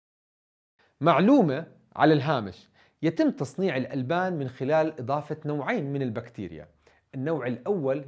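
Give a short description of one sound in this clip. A man speaks calmly and clearly close to a microphone.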